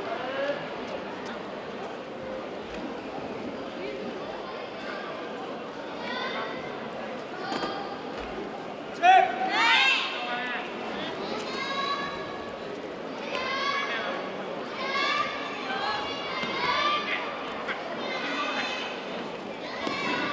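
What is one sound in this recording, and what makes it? A crowd of spectators murmurs in the background.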